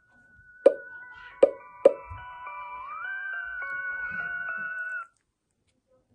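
Electronic game music plays from a tablet speaker.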